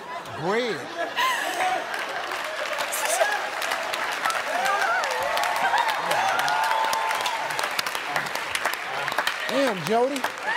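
An audience cheers and applauds in a large hall.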